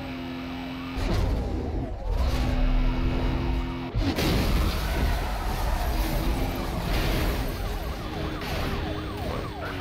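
A car crashes and scrapes against other cars.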